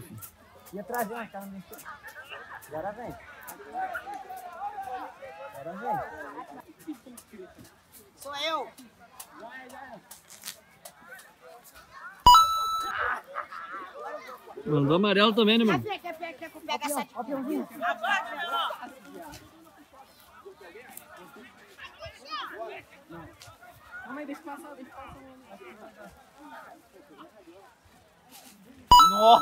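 A crowd of people chatters and calls out across an open field outdoors.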